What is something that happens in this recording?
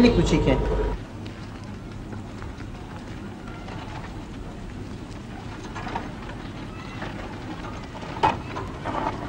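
Footsteps scuff on dry gravel as a motorcycle is pushed.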